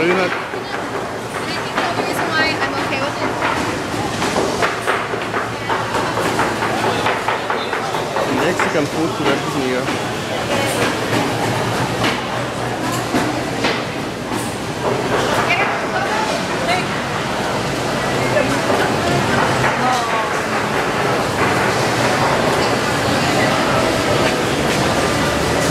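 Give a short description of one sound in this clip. A crowd of people chatters all around in a busy echoing hall.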